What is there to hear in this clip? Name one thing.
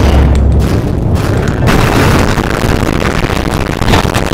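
Troops clash in a noisy battle.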